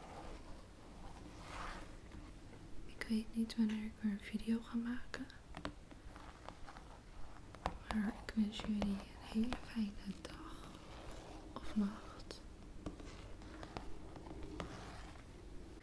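Fingers tap and brush against a stiff cardboard cover.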